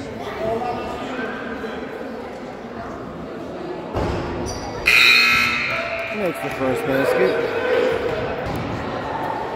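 Voices of young players and a few spectators chatter in a large echoing gym.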